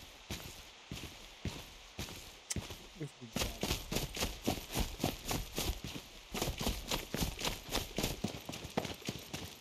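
Footsteps crunch quickly on gravel and grass.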